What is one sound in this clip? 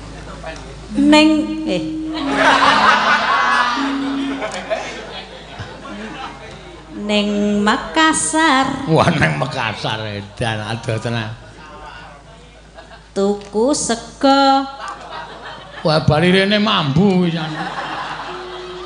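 A woman sings through a microphone in a wavering, ornamented voice.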